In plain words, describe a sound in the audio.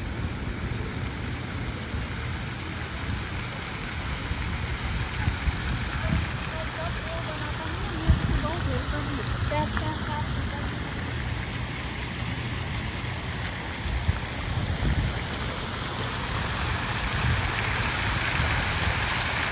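Water splashes steadily in a fountain, growing louder up close.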